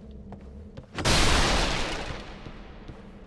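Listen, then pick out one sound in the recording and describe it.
A huge creature lunges with a loud, rushing roar.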